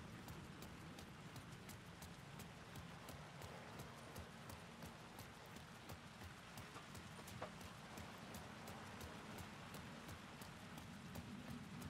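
Footsteps splash on wet pavement.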